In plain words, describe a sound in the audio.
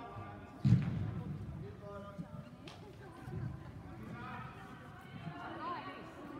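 Young players call out to each other from a distance in a large echoing hall.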